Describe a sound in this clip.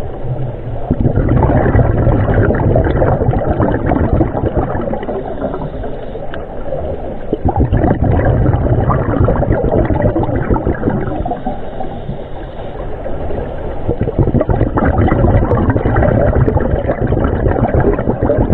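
Scuba divers' breathing bubbles gurgle and rumble loudly underwater.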